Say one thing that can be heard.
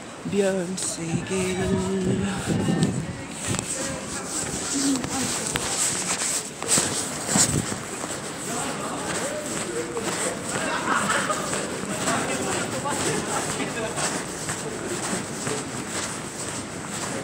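A busy street hums with outdoor noise.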